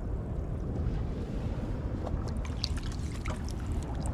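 Water splashes and sloshes as hands rummage in a shallow pool.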